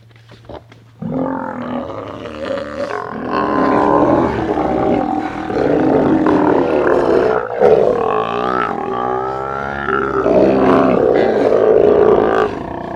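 Sea lions roar and bellow loudly, close by.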